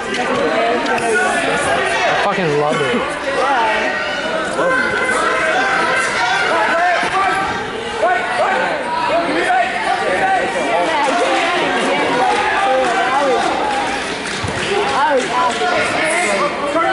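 A crowd of spectators shouts and cheers throughout, echoing in a large hall.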